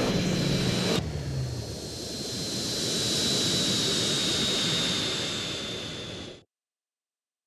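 A jet plane roars loudly as it passes overhead.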